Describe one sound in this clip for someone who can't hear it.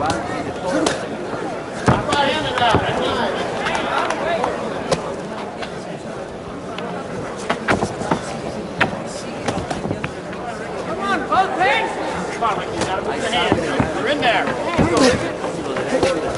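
Boxing gloves thud against bodies in a series of punches.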